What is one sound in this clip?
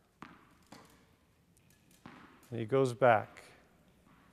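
Wheelchair wheels roll over a hard court.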